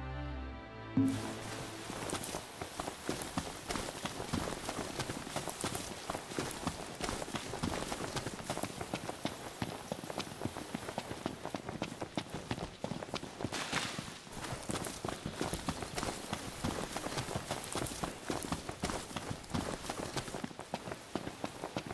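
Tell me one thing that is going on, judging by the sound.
Footsteps run quickly on dirt and grass.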